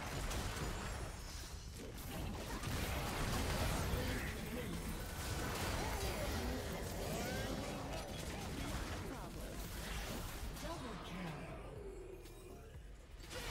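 Game spell effects whoosh and crackle in a fast fight.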